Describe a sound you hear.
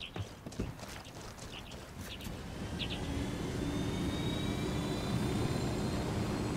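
A helicopter's rotor thuds close by and grows louder.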